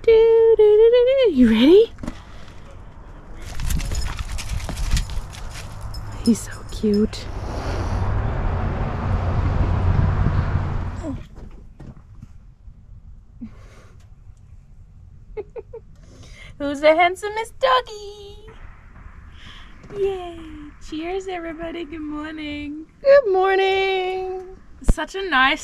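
A woman speaks close by in a high, playful voice.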